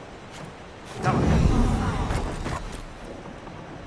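A magical whoosh rings out with a shimmering burst.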